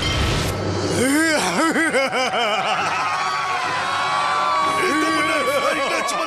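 A crowd of cartoon characters screams in terror.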